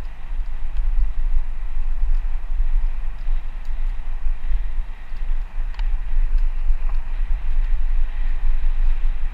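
Wind rumbles and buffets steadily.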